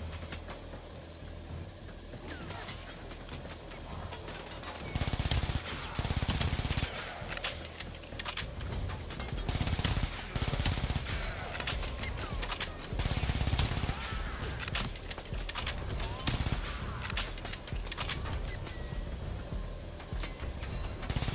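Gunfire cracks in quick bursts.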